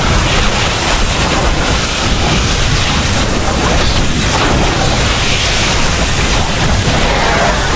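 Game units fire energy weapons in a battle with crackling blasts and explosions.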